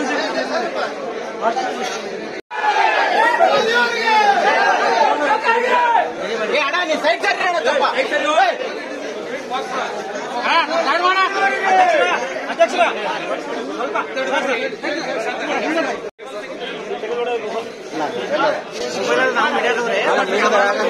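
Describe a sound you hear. A crowd of men chatter and call out loudly all around, close by.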